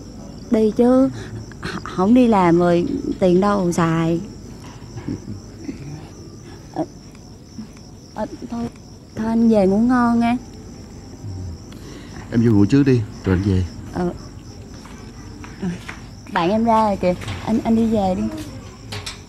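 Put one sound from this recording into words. A young woman speaks softly and emotionally, close by.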